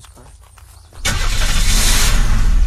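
A car engine starts and roars loudly.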